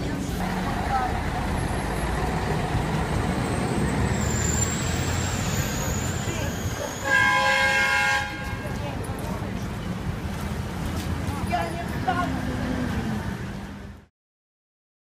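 A bus engine idles nearby.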